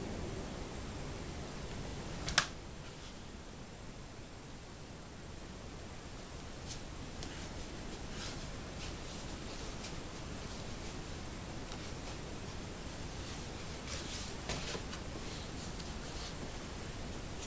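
Foam sheets rustle and crinkle as hands fold them.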